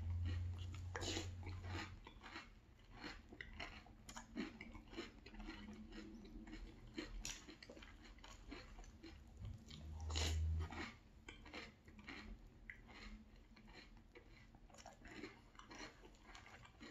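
A man chews crunchy cereal loudly, close to a microphone.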